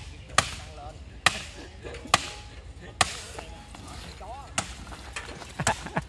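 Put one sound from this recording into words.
A sledgehammer strikes concrete rubble.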